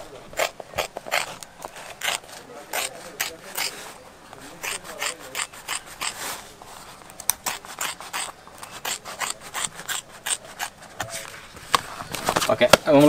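Scissors snip through thick rubber in short, repeated cuts.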